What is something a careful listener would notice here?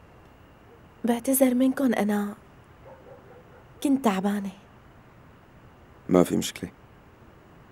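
A young woman speaks in short, emotional bursts close by.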